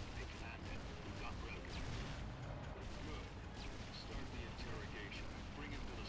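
An energy weapon fires with sharp crackling blasts.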